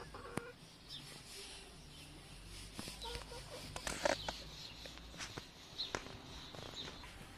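Hens cluck softly close by.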